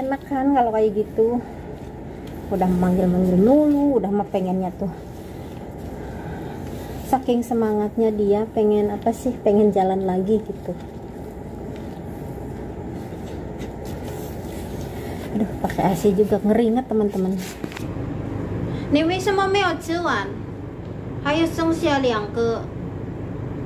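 A woman talks close by, with animation.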